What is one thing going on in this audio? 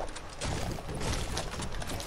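A pickaxe strikes a wall with a sharp knock.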